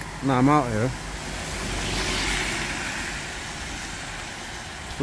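A car drives away on a wet road with tyres hissing.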